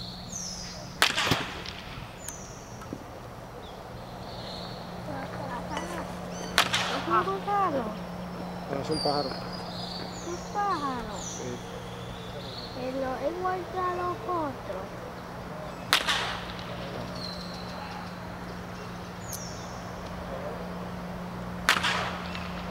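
A bat cracks sharply against a baseball, again and again, outdoors.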